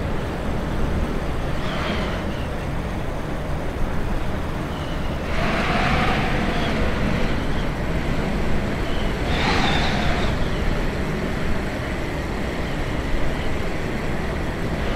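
Wind rushes past a small plane, swelling in gusts.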